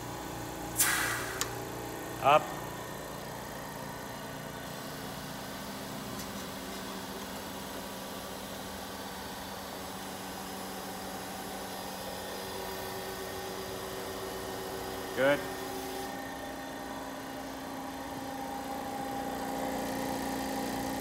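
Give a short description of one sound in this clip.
A pneumatic vacuum lifter hums steadily.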